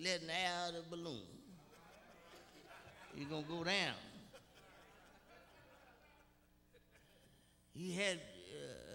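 An elderly man preaches with animation through a microphone, his voice echoing in a large hall.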